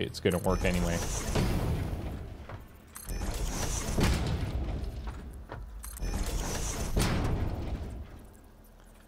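A building piece locks into place with a whooshing, clanking burst.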